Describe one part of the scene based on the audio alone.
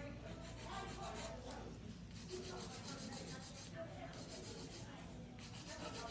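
A nail file rasps quickly back and forth across a fingernail.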